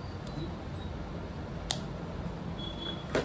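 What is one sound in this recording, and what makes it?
A small plastic case lid snaps shut.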